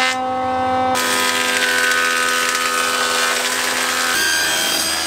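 A thickness planer roars as it feeds wood through.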